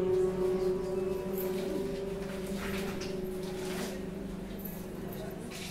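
A man sings a long, steady note into a microphone, heard through a loudspeaker.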